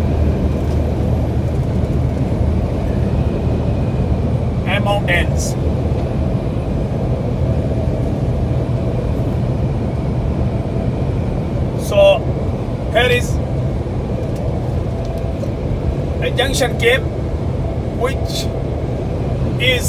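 Tyres roll steadily on a highway.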